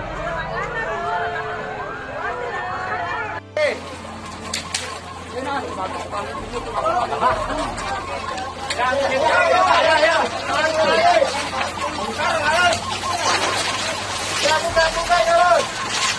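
Women shout and wail with alarm nearby.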